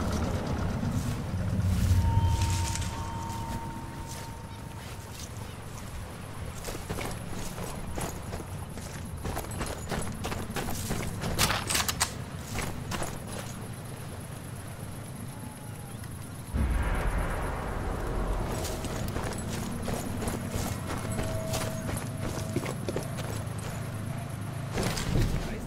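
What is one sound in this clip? Footsteps crunch over dirt and gravel.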